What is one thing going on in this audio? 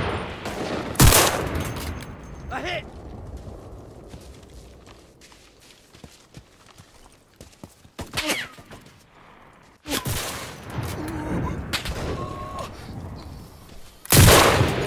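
A rifle fires with a loud, sharp crack.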